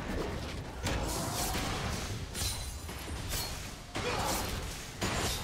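Game combat effects crackle and whoosh in quick bursts.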